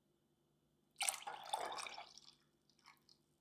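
Milk pours and splashes into a glass jug.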